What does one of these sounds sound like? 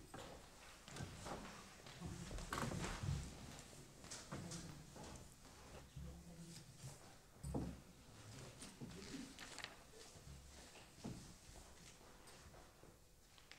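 A middle-aged woman talks calmly nearby in a hard-walled room.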